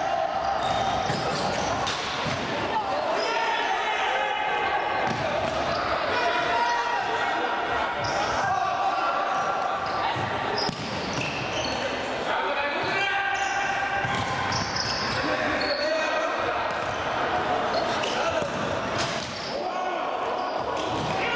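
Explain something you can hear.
Men shout to one another across an echoing hall.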